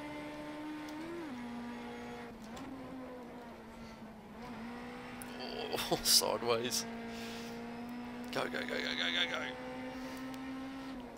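A racing car engine drones steadily, its pitch shifting slightly with gear changes.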